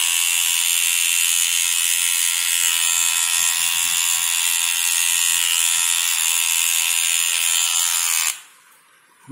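A hair clipper buzzes steadily.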